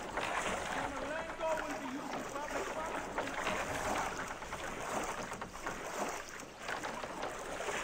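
Water splashes and laps as an oar rows a small boat.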